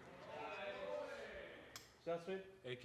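A man calls out nearby.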